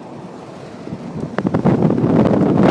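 Wind rushes loudly past an open window.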